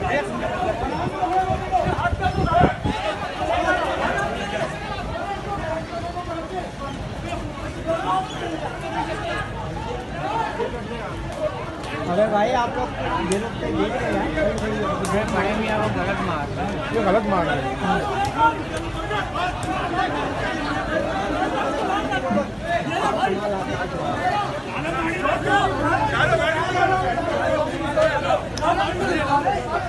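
A large crowd of men shouts and clamours outdoors.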